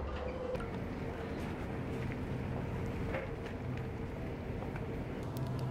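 Shoes tap on a hard floor while a person walks.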